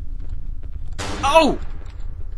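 A young man screams in fright close to a microphone.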